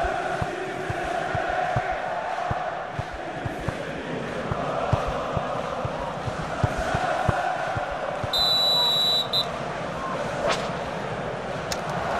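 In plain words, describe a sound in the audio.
A large crowd cheers and murmurs steadily in a stadium.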